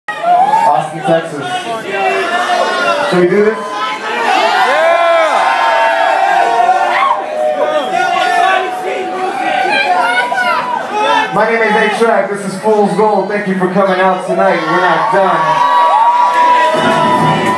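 Electronic music plays loudly through loudspeakers.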